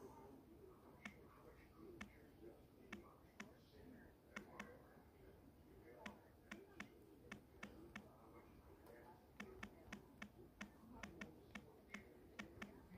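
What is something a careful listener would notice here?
Fingers tap quickly on a phone's touch keyboard with sharp clicks.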